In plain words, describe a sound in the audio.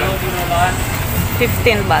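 A plastic bag rustles in a vendor's hands.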